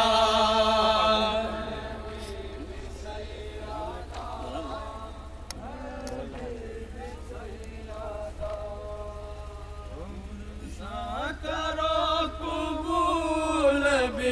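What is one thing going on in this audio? A young man sings a mournful chant loudly through a microphone.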